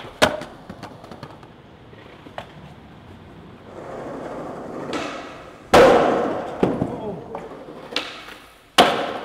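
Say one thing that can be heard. A skateboard clacks and slams down hard.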